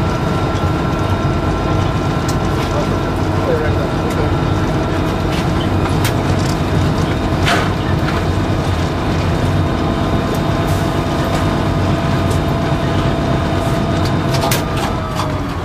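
A diesel locomotive engine rumbles steadily up close.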